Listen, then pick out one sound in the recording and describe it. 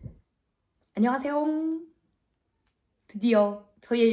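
A young woman speaks cheerfully and brightly, close by.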